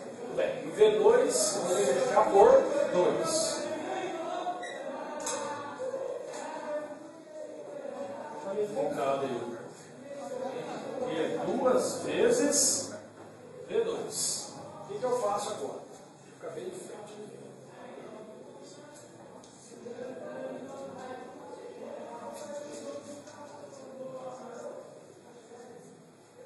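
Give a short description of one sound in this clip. A man explains calmly, close by.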